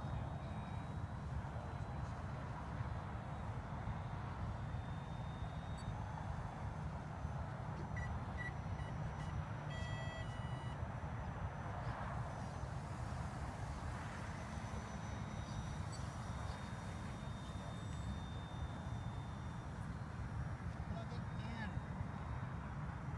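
A small model airplane motor whines faintly high overhead.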